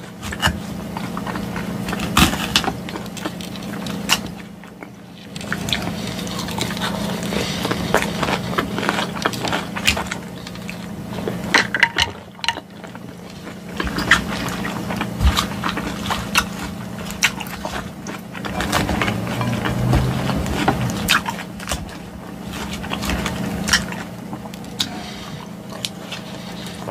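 A woman chews crunchy salad close to a microphone.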